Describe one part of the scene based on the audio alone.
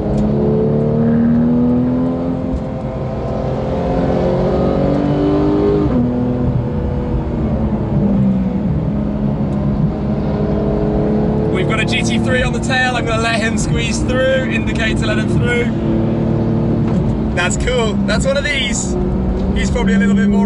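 A car engine roars loudly and changes pitch as the car speeds up and shifts gears.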